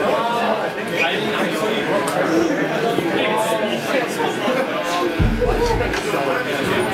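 A crowd chatters and cheers in a noisy hall.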